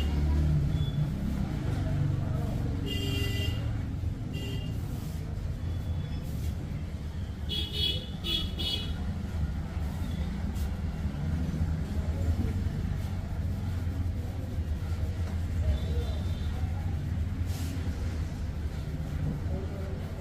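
Hands tap and rub on a man's head and hair.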